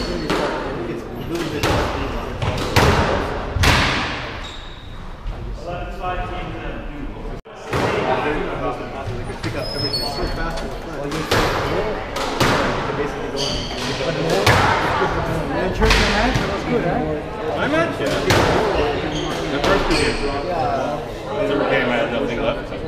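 Sports shoes squeak sharply on a wooden floor.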